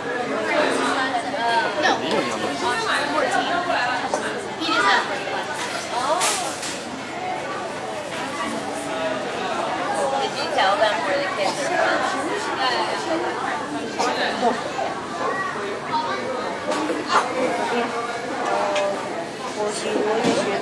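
A crowd of adults and children chatters nearby.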